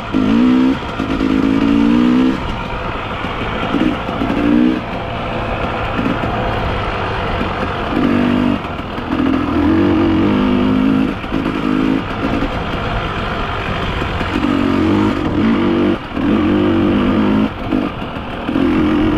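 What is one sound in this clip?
A bicycle's freewheel buzzes while coasting.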